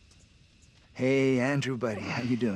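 A young man speaks in a friendly greeting, close by.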